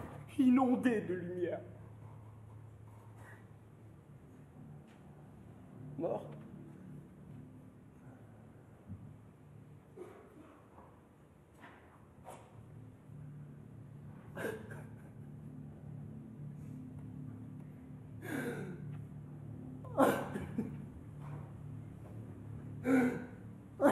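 A man sobs and cries out in anguish close by.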